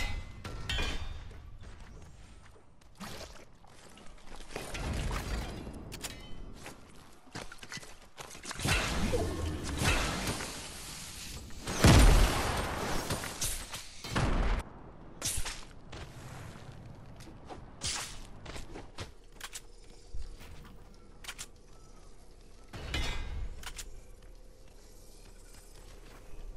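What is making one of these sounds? Game sound effects of building clatter in quick bursts.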